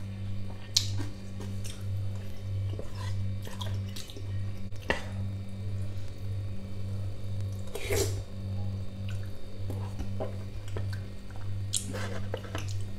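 A metal spoon clinks against a ceramic bowl.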